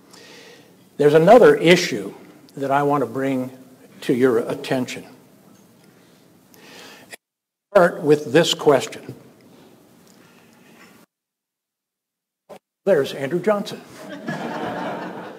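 An elderly man speaks calmly into a microphone.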